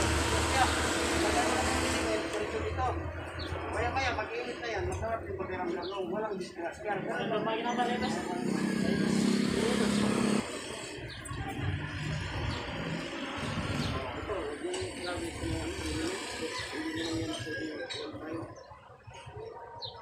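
Several men talk and call out nearby, outdoors.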